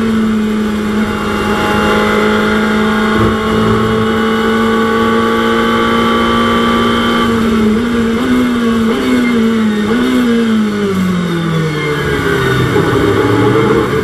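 A racing car engine roars steadily, then drops in pitch through quick downshifts under braking.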